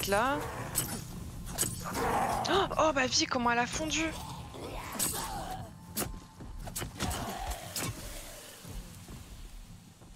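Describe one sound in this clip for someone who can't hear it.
Blades strike and slash in quick blows.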